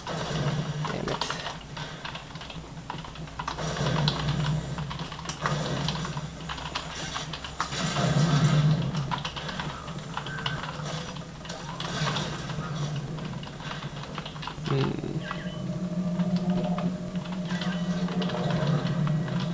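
Keys on a computer keyboard click and clatter.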